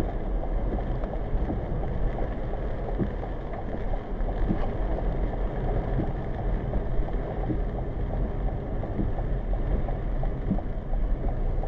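Rain patters lightly on a windshield.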